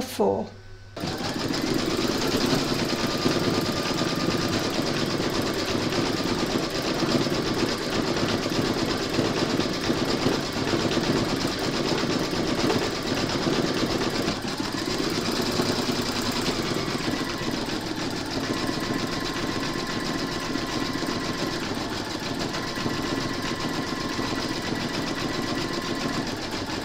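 An embroidery machine hums and rattles steadily as its needle stitches fast.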